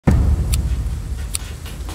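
A lighter clicks and flares.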